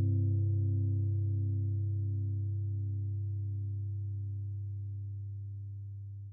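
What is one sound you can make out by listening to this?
An electric guitar chord rings out low and slowly fades.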